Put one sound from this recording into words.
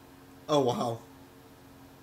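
A man exclaims briefly and loudly into a close microphone.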